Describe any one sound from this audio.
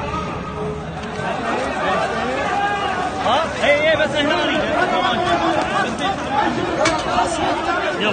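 A crowd of men shouts and cries out excitedly.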